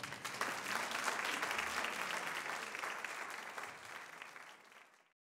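An audience applauds in a large room, and the applause slowly fades away.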